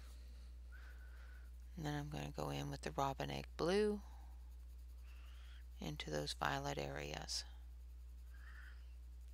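A colored pencil scratches softly on paper.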